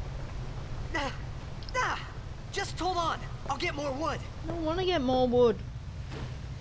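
A young man speaks urgently.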